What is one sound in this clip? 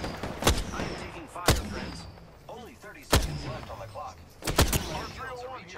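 Gunshots crack sharply, a few seconds apart.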